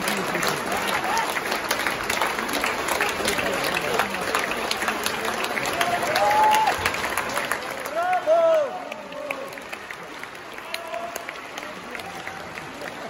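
Audience members cheer and shout.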